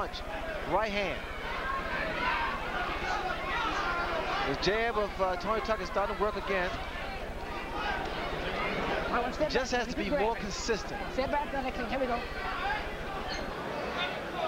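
A large crowd cheers and roars throughout.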